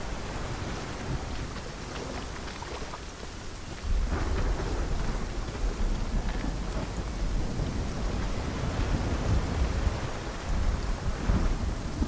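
Footsteps tread slowly on stone.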